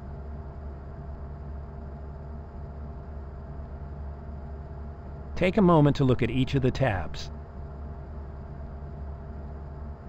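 An electric locomotive hums steadily while standing still.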